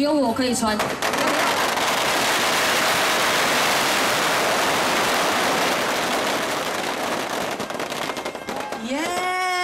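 Firecrackers crackle and burst in a dense, rapid barrage.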